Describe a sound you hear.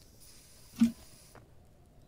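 A torch flame crackles close by.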